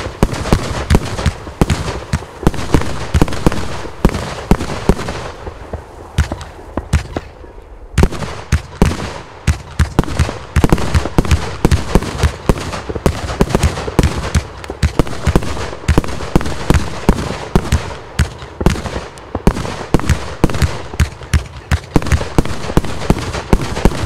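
Fireworks launch from a tube with rapid whooshing pops.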